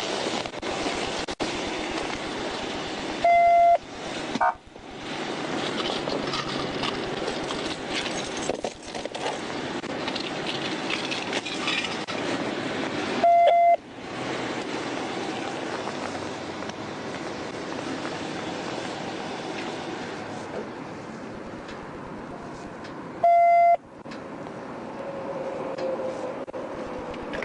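A woman talks loudly outdoors.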